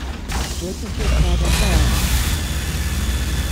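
An energy gun zaps and crackles loudly.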